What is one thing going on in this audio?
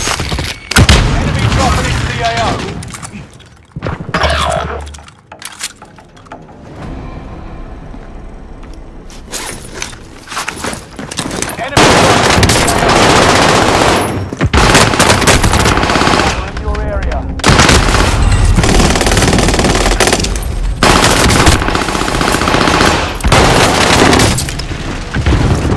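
Gunfire rings out in rapid bursts.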